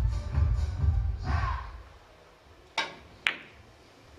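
Billiard balls knock against each other.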